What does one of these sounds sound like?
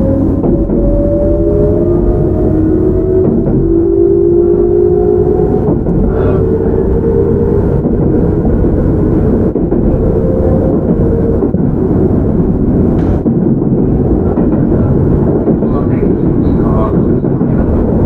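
An electric train rumbles along the tracks with a steady low roar.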